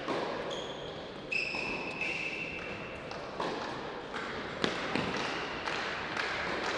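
A tennis player's footsteps tap on a hard court.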